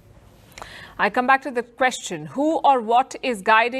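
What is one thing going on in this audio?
A young woman speaks clearly into a microphone, like a news presenter.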